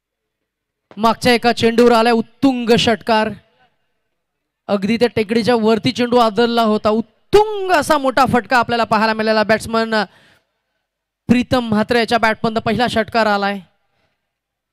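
A man commentates with animation through a microphone.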